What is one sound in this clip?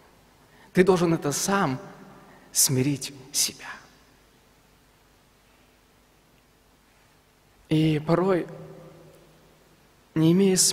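A young man speaks calmly into a microphone in an echoing hall, with long pauses.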